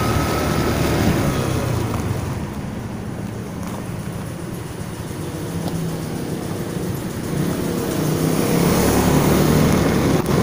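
A motorcycle engine hums and rises and falls as the bike rides along.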